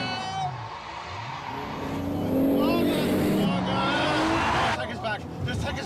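A car engine roars as it speeds past.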